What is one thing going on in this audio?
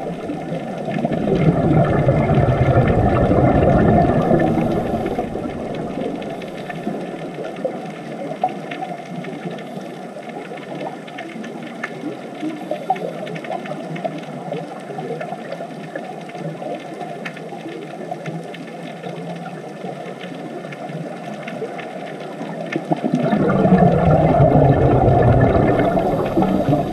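Air bubbles rumble and gurgle loudly close by underwater.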